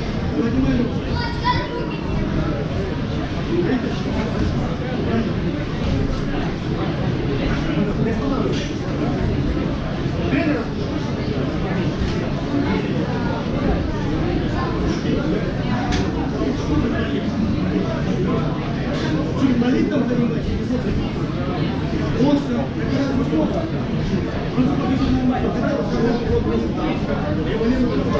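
A crowd of spectators chatters steadily in an echoing hall.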